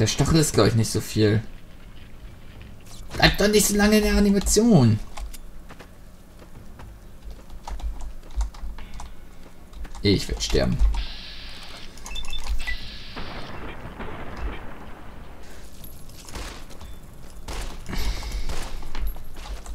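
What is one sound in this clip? A pistol fires a series of shots.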